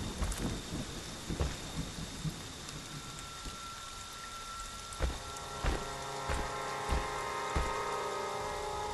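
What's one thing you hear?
Heavy footsteps thud through leafy undergrowth at a steady walking pace.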